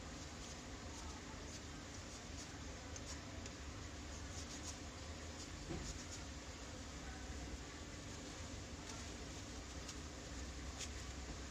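Plastic parts click and rattle as they are handled up close.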